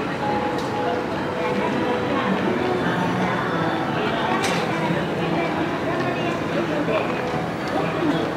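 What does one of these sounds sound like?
Footsteps shuffle and tap on a paved walkway.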